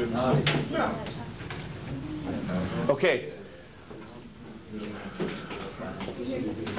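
Several men and women talk at once nearby.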